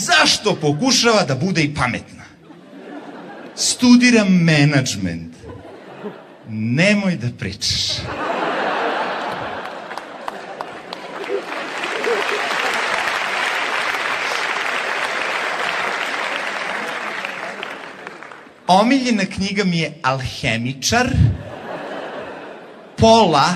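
A young man talks with animation into a microphone in a large echoing hall.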